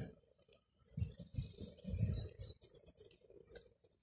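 A man gulps a drink from a bottle.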